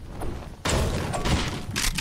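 A pickaxe thuds against wood.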